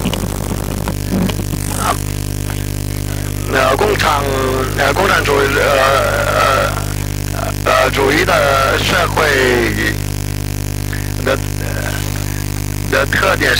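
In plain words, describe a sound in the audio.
An elderly man speaks calmly into a microphone in a reverberant room.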